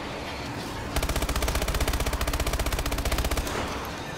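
A rifle fires in a rapid, steady burst.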